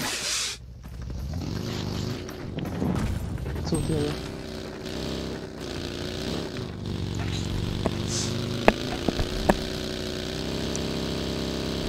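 A buggy engine hums and revs as it drives.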